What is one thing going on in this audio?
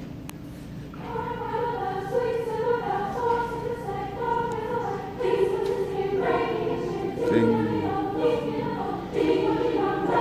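A girls' choir sings together in a large echoing hall.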